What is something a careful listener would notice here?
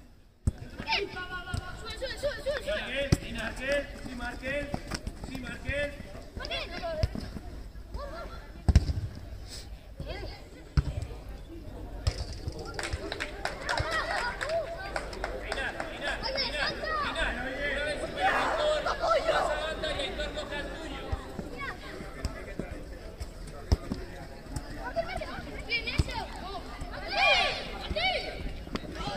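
Young players shout and call to each other outdoors.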